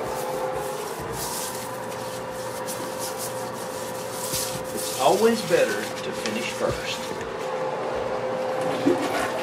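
A brush scrubs and swishes inside a toilet bowl.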